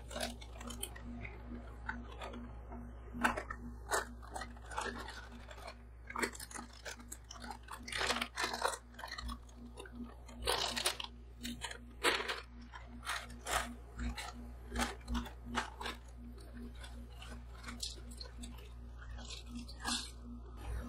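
A plastic snack bag crinkles and rustles loudly.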